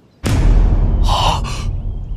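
A man cries out in shock.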